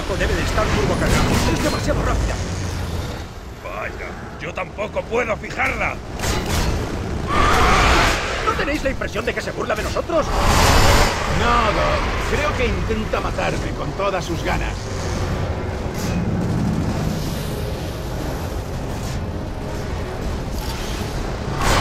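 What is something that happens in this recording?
Engines rumble steadily.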